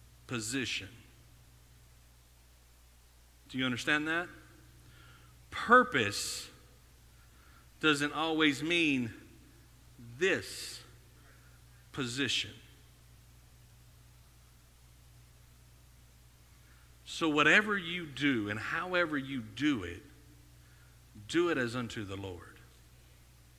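A man speaks through a microphone in short bursts with pauses.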